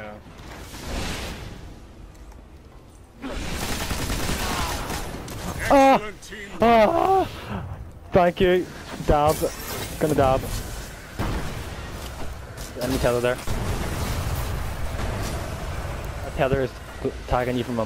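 Energy rifles fire in bursts of crackling shots.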